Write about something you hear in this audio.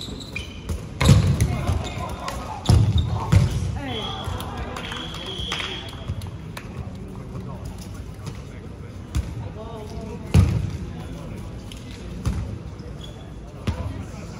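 Balls thud hard off bodies and the floor in a large echoing hall.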